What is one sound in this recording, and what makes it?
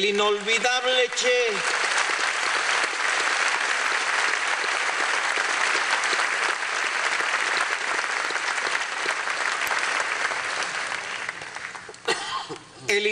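A large crowd applauds loudly in a big echoing hall.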